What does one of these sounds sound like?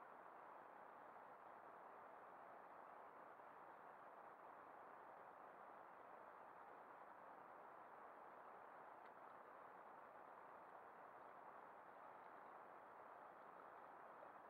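Small waves lap against a kayak's hull.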